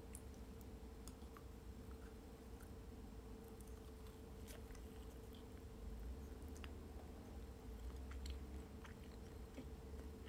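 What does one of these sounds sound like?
A spoon clinks softly against a bowl.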